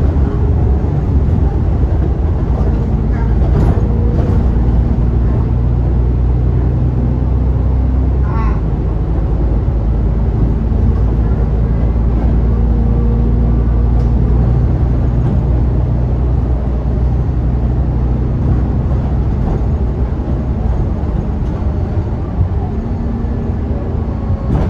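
A bus engine hums steadily with a low drone as the bus drives along.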